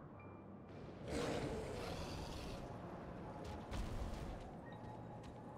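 A rushing whoosh sweeps past as a huge winged beast swoops.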